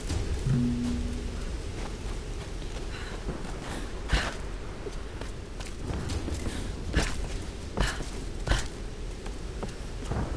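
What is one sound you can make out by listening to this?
Footsteps crunch through grass and onto stone steps.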